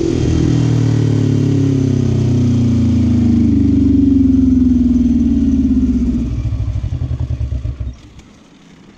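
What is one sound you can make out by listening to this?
A quad bike engine drones loudly while riding, then winds down.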